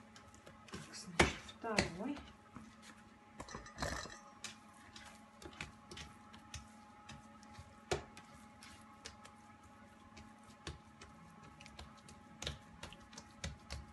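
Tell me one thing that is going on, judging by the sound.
Hands knead and pat soft dough on a countertop with soft thumps.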